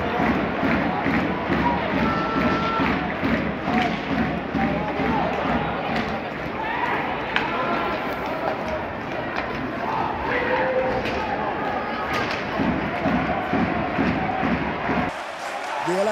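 A large crowd chants rhythmically in a big echoing arena.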